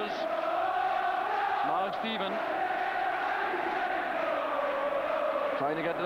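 A large stadium crowd sings and chants loudly throughout.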